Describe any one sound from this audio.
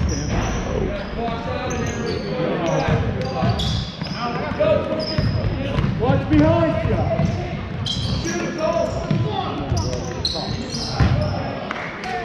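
Young players shout to each other.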